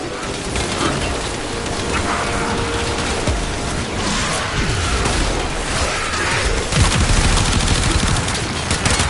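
Gunfire crackles rapidly in a game.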